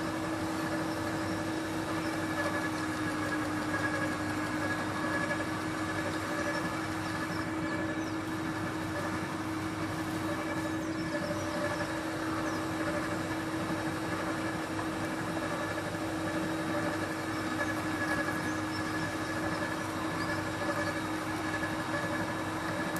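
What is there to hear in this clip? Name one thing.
A garden shredder grinds up branches.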